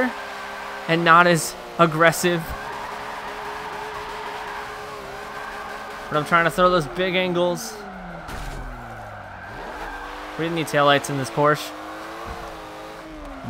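A car engine drones and revs.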